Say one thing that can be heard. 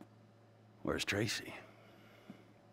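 A man asks a question in a calm voice.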